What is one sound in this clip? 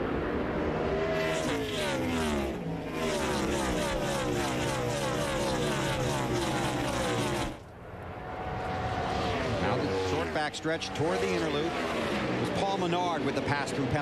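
Race car engines roar loudly as cars speed past one after another, each pitch dropping as it passes.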